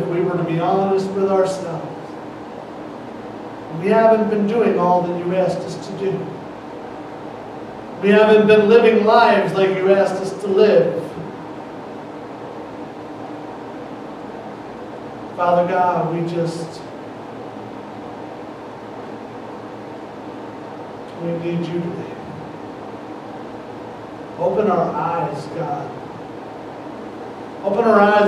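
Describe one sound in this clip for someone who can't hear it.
A man speaks calmly into a microphone, in short phrases with long pauses, in a slightly echoing room.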